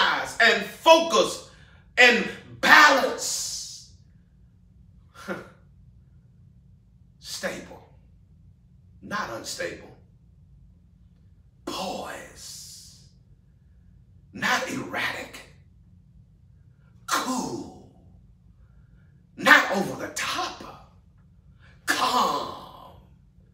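A middle-aged man speaks with emphasis into a close microphone, in short bursts with pauses.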